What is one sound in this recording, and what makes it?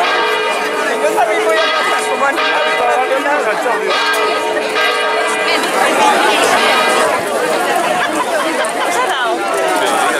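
A crowd of men and women chatters loudly outdoors nearby.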